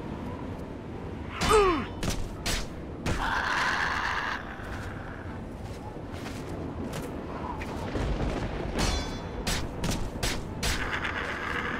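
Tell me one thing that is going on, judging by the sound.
Fists thud against a creature in a series of heavy blows.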